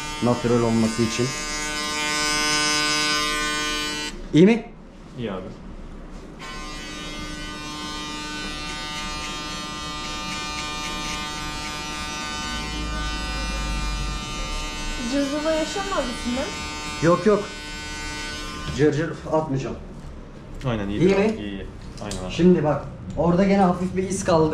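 An electric clipper buzzes steadily close by.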